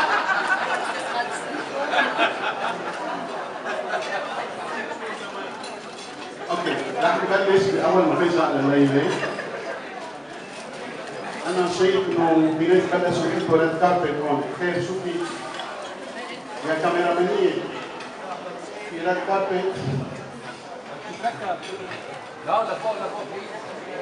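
A man sings into a microphone through loudspeakers in a large echoing hall.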